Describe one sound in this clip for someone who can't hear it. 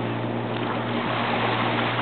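A stone splashes into water.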